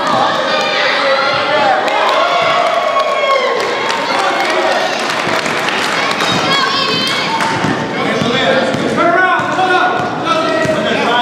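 Young children shout and squeal in a large echoing hall.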